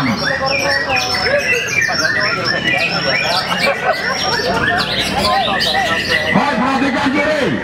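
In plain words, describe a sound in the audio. Many caged songbirds chirp and sing loudly all at once.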